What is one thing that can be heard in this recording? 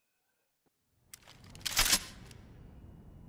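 A gun rattles and clicks as it is handled.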